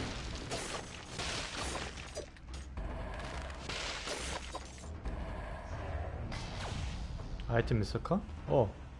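Video game fighting sounds whoosh and clash.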